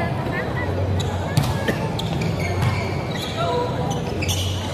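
A volleyball is hit with sharp slaps in an echoing gym.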